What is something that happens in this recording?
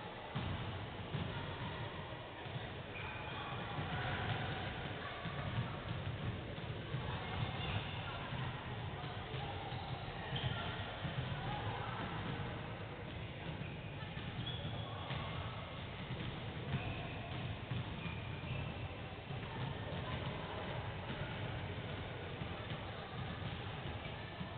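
Basketballs bounce on a hard court in a large echoing hall.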